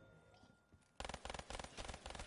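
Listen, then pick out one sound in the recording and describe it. A pistol fires a rapid burst of shots.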